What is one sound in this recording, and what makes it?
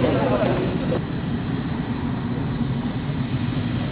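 Footsteps scuff on paving as a group walks.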